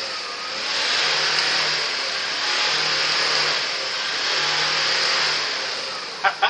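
A car engine revs hard in repeated bursts.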